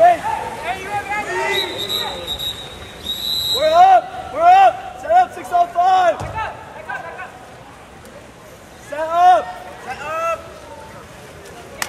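Spectators shout and cheer from the poolside.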